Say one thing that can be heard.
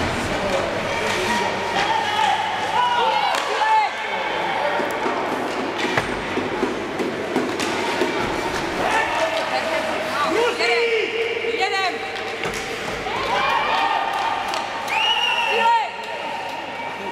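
Young children shout and call out in a large echoing rink.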